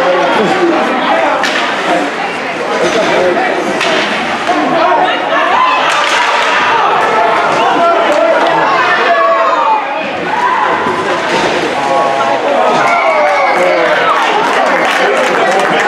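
Spectators chatter and call out in an echoing rink.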